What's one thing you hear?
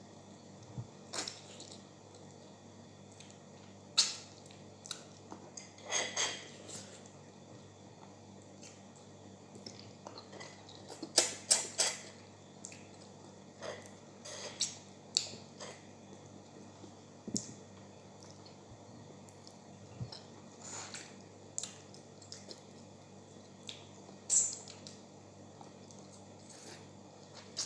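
A woman sucks and slurps loudly at a bone close by.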